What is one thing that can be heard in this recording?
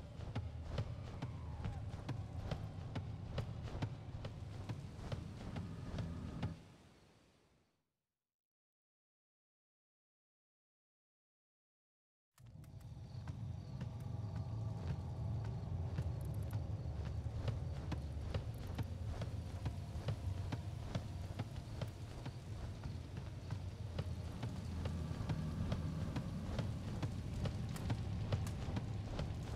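Footsteps thud on wooden floorboards.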